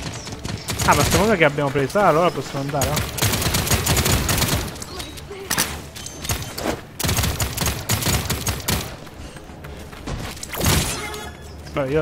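Rapid gunfire and blasts sound from a video game.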